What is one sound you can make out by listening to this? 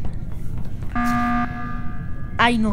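An electronic alarm blares.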